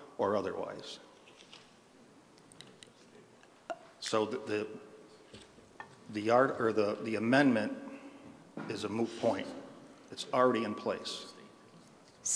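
A middle-aged man speaks in short bursts through a microphone in an echoing hall.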